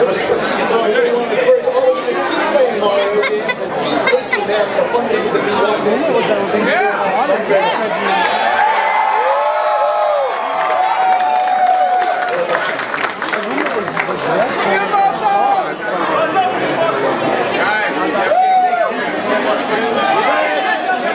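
A crowd chatters and murmurs in a busy room.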